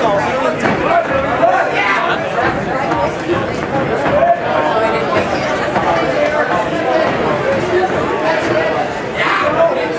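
A crowd cheers and shouts throughout a large hall.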